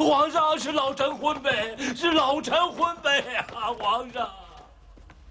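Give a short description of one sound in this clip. A man pleads loudly and with emotion, close by.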